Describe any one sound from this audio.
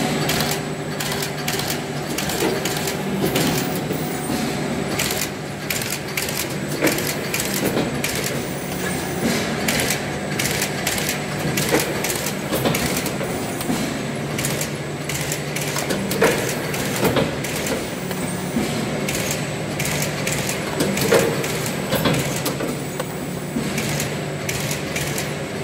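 Machine parts clack and thump in a repeating rhythm.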